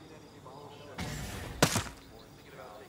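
A rifle fires a single shot.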